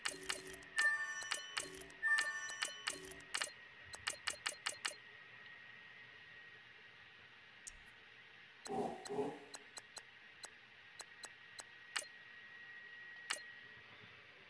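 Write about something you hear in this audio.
Short electronic menu blips and ticks sound in quick bursts.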